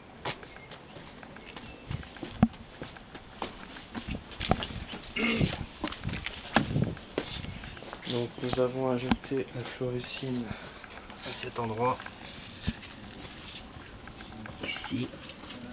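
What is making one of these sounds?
Footsteps tap and scuff on stone paving close by.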